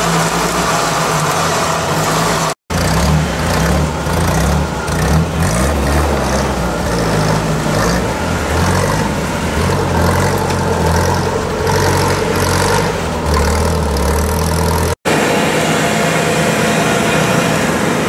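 Tyres churn and squelch through thick mud.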